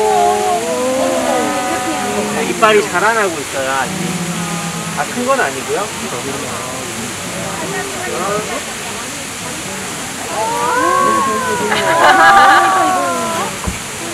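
Young tigers whine and mew loudly up close.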